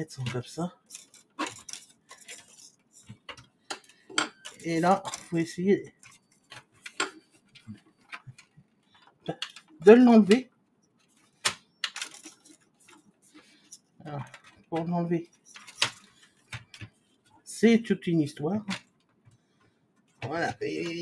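Plastic parts click and rattle as they are handled.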